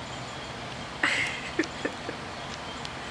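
A baby coos and squeals nearby.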